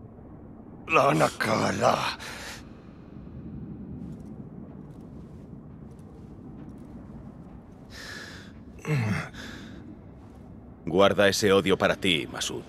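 A man speaks in a low, grave voice.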